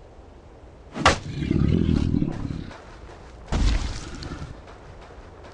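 A weapon strikes a creature with heavy thuds.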